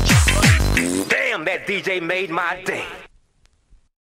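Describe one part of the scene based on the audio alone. Fast electronic music plays, then stops abruptly.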